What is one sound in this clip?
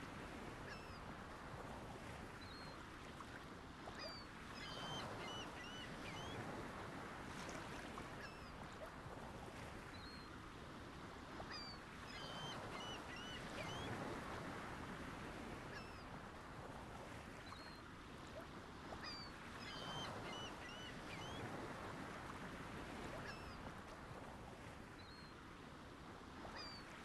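Water swishes and rushes steadily.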